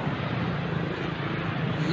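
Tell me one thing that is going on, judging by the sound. A car drives by.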